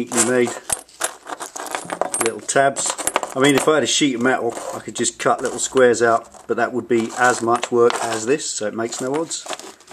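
Small metal pieces clink as they are set down on a hard surface.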